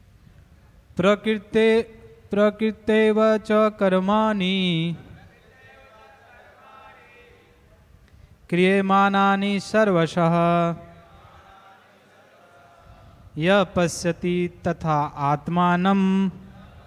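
A man chants loudly in a singing voice through a microphone, in bursts with pauses.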